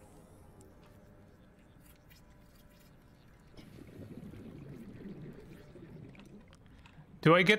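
A repair tool hums and crackles underwater.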